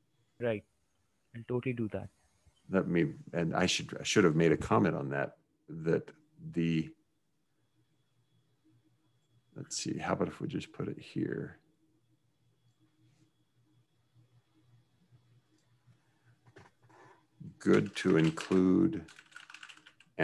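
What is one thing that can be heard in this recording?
A man speaks calmly into a microphone, close up.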